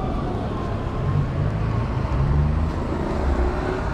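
A bus engine rumbles nearby on a street.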